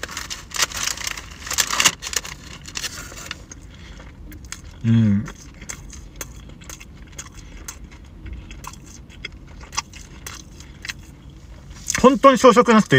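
A man chews food noisily up close.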